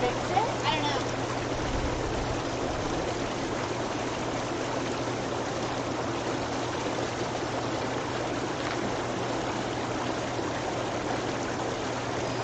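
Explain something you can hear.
A pump hums steadily.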